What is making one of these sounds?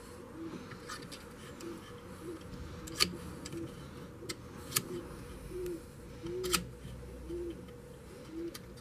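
A metal tool clicks and knocks against a brake part.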